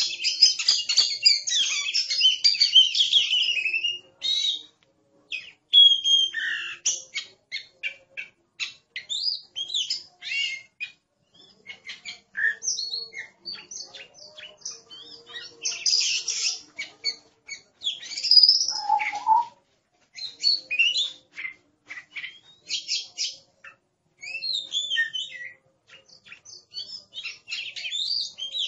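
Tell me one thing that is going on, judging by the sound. A songbird sings a varied, whistling song with quick chirps and trills, close by.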